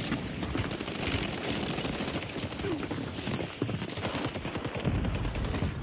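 Gunfire and explosions crack from a video game.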